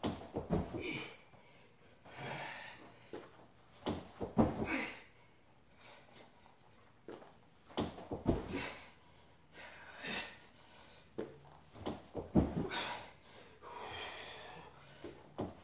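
A person breathes hard with effort.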